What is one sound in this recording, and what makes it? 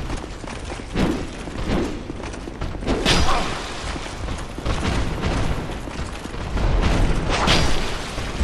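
A heavy blow thuds against an enemy.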